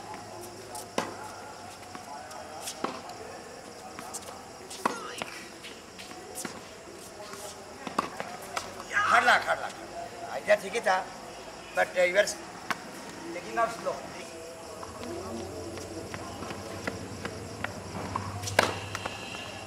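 Tennis rackets strike a ball with sharp pops.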